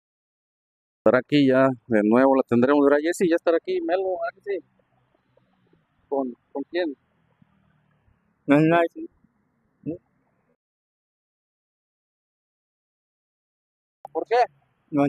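A man speaks haltingly, close to a handheld microphone, with pauses between phrases.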